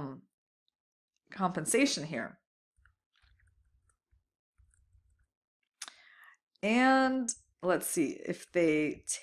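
A young woman speaks calmly and clearly into a close microphone, with pauses.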